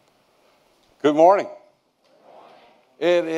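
An elderly man speaks loudly through a microphone in an echoing hall.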